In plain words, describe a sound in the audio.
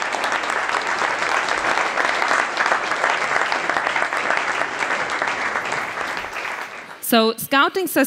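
An audience applauds loudly and the applause fades away.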